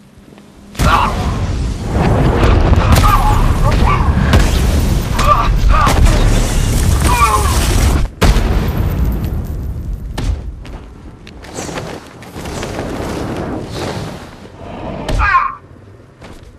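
Men grunt and shout as they are struck.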